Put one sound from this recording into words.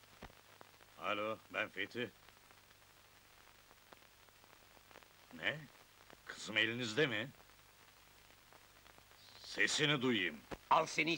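A man speaks into a telephone in short phrases.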